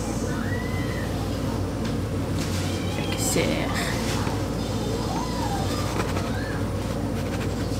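An omelette sizzles softly in a frying pan.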